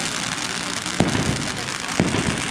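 A firework rocket launches with a sharp bang.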